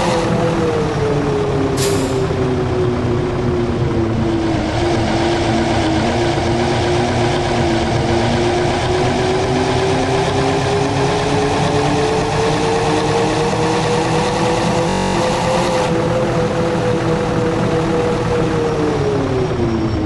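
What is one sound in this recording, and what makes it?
A bus engine hums steadily, its pitch rising and falling as it speeds up and slows down.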